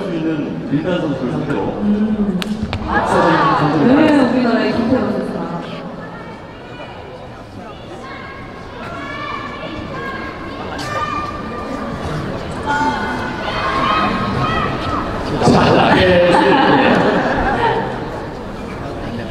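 A shuttlecock is struck sharply with a racket.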